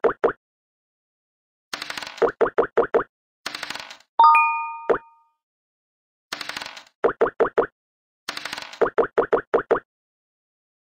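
Game pieces hop across a board with quick popping taps.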